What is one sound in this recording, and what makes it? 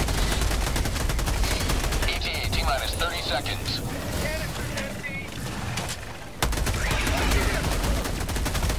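A rapid gun fires bursts of shots.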